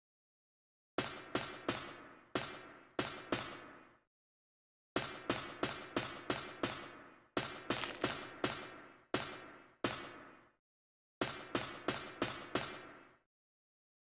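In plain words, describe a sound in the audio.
Boots step on a metal floor.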